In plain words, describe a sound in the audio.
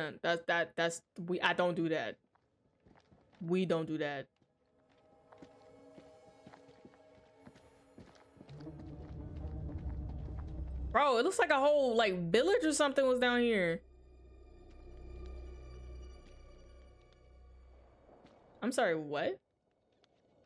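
A young woman talks with animation close to a microphone.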